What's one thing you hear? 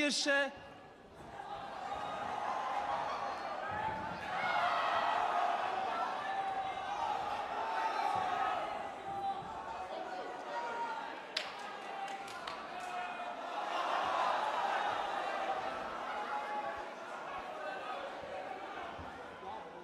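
A crowd in a large hall shouts and jeers.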